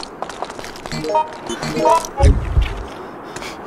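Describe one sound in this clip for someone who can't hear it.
A menu chimes with short electronic beeps.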